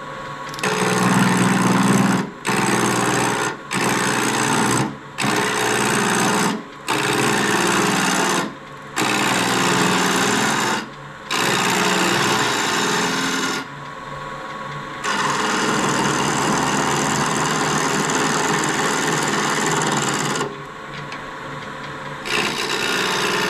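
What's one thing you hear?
A chisel scrapes loudly against spinning wood in repeated bursts.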